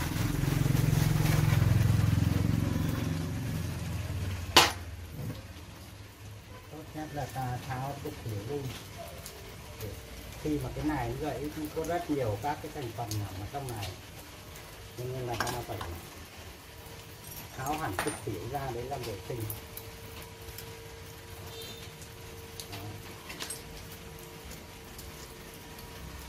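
Metal parts clink and knock against each other.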